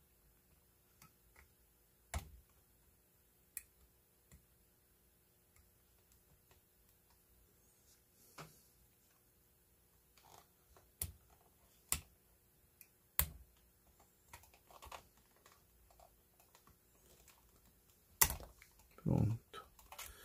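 A metal tool clicks and scrapes against small plastic parts.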